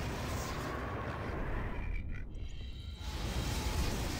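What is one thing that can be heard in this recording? Fireballs whoosh and burst.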